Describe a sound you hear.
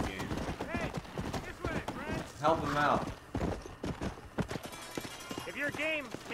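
A horse gallops, hooves thudding on the ground.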